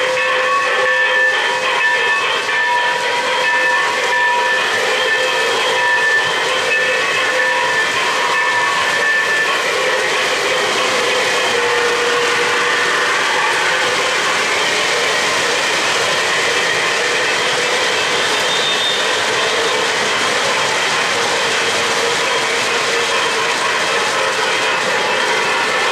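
Model trains rumble and clatter steadily along metal tracks close by.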